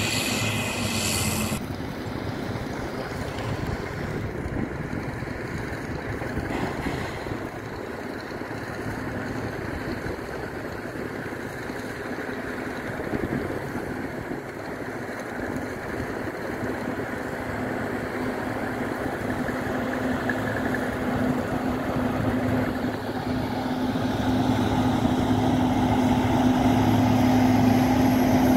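A diesel engine rumbles steadily outdoors and grows louder as a grader drives closer.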